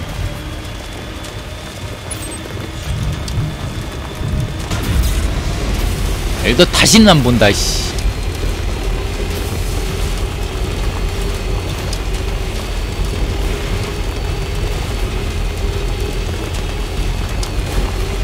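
A vehicle engine rumbles steadily as it drives over rough ground.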